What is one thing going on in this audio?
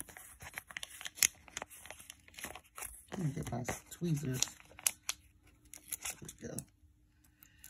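Paper and a sticker sheet rustle and crinkle close by.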